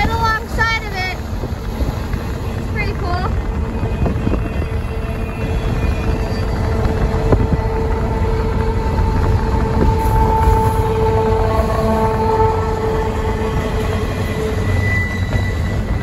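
Train wheels squeal and screech on the rails.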